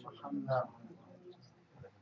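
Paper rustles softly against cloth.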